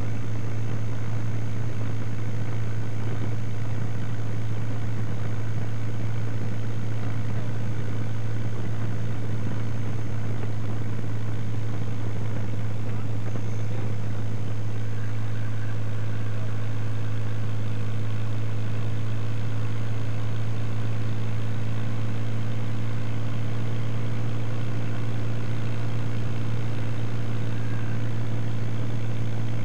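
A small propeller plane's engine drones steadily and loudly up close.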